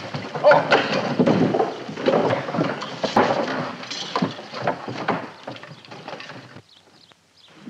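Men hammer and knock on wooden boards.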